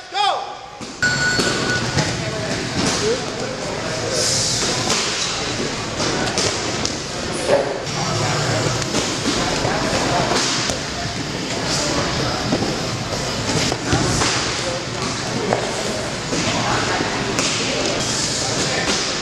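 Men chatter in the background of a large echoing hall.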